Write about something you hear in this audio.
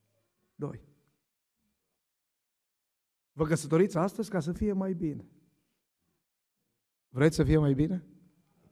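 A middle-aged man preaches into a microphone in short, earnest phrases, with pauses between them.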